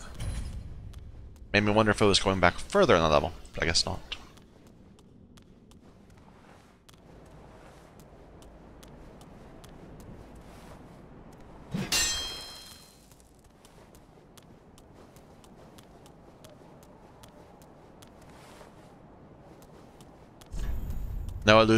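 Heavy armoured footsteps tread on stone.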